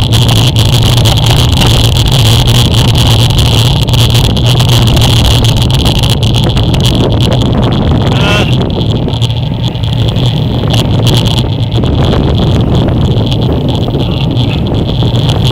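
Bicycle tyres hum steadily on wet pavement.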